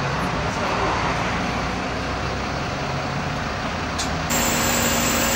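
A bus engine idles with a low rumble.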